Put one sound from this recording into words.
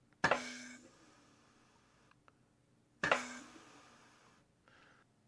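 Compressed air hisses in short, sharp blasts.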